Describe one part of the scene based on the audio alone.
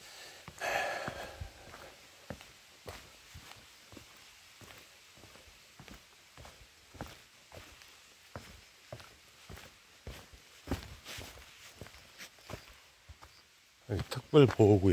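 Footsteps crunch steadily on a rocky trail.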